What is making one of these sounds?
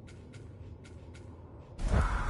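Soft menu clicks tick several times.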